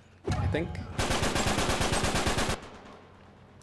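A machine gun fires a rapid burst.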